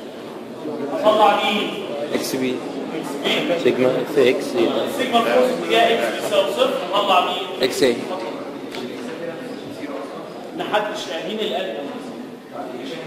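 A man lectures in a lively voice in an echoing room.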